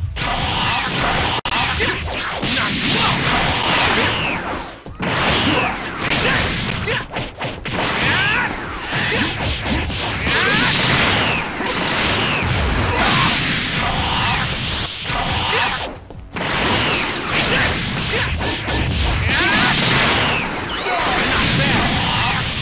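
Energy blasts and dashes whoosh in a video game fight.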